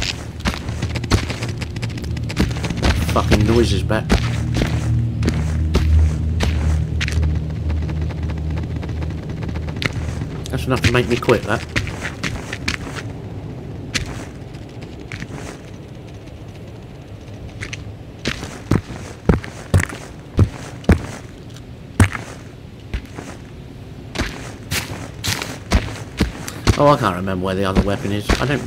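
Footsteps crunch on gravel at a walking pace.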